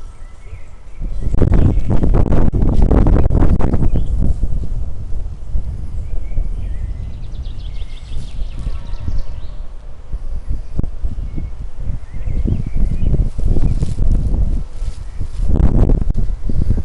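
Wind blows outdoors in strong gusts that rumble against the microphone.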